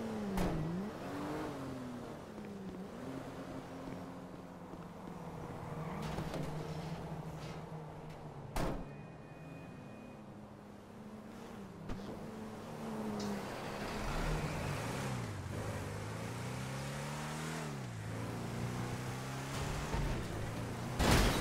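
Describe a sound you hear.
A heavy truck engine rumbles and revs up and down.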